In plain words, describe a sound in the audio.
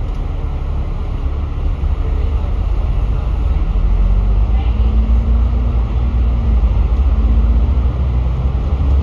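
A bus engine rumbles low and steady as the bus drives along.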